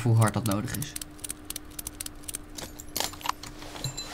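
A wrench clicks as a wheel nut is loosened.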